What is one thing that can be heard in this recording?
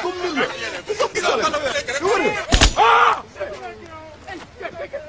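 Several men shout and sing excitedly close by.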